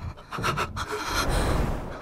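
A young boy speaks in surprise.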